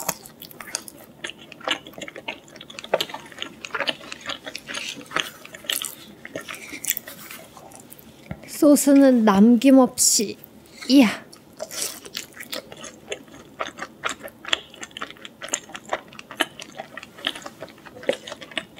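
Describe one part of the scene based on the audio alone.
A young woman chews food with wet, crunchy sounds close to the microphone.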